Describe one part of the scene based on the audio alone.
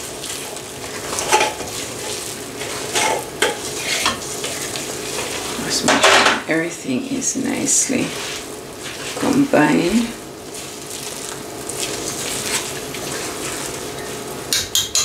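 A spoon scrapes and clinks against a metal bowl while stirring thick batter.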